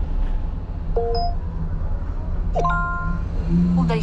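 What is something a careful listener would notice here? A phone beeps a few times.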